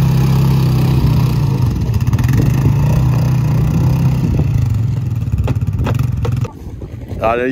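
An off-road quad bike engine rumbles and revs nearby.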